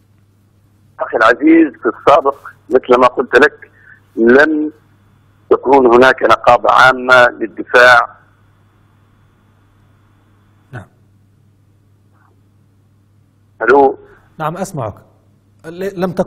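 A young man speaks calmly and clearly into a close microphone, with pauses.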